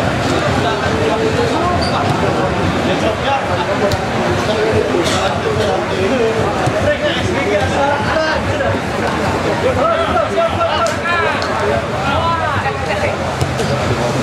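Young men shout and call to each other across an open pitch.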